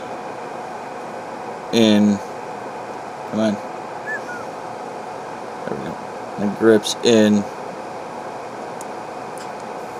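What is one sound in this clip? A small metal tool scrapes and clicks against a screw.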